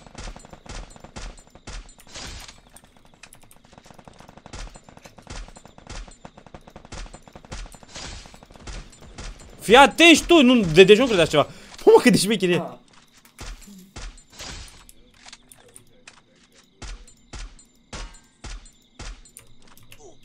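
Rifle shots fire in a quick, repeated series.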